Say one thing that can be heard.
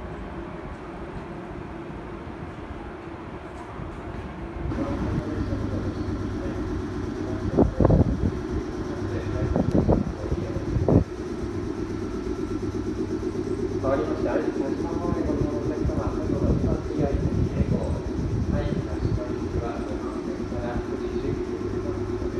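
A train engine idles with a low, steady hum.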